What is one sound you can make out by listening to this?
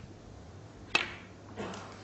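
A snooker cue strikes a ball with a sharp click.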